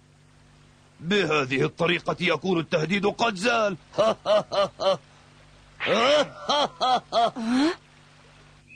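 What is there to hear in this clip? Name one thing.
An elderly man talks and laughs heartily.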